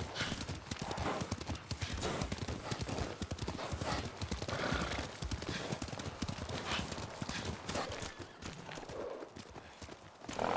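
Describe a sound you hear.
Horse hooves pound along a wet dirt track at a gallop.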